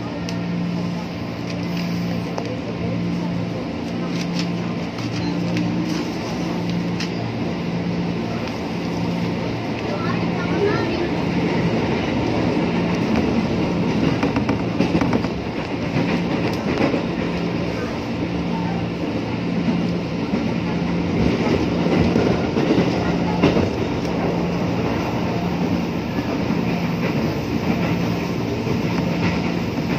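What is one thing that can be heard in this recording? A train rumbles and clatters along its tracks, heard from inside a carriage.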